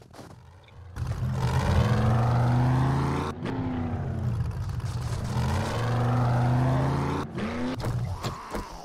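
A truck engine rumbles and revs as it drives.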